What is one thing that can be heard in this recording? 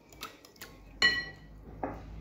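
A metal whisk clinks against a glass bowl.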